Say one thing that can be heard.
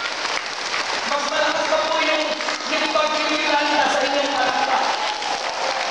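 A crowd of men and women sings together.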